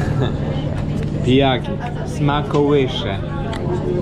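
A man talks animatedly close by.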